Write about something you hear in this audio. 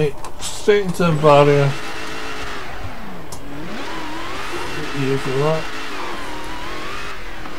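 A racing car engine revs and whines, rising and falling in pitch.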